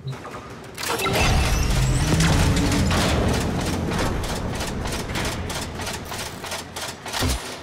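Steam hisses loudly from a machine.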